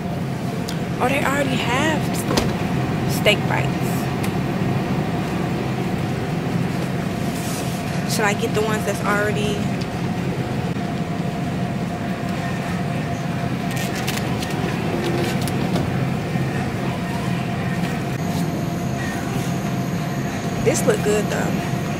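A young woman talks casually, close by.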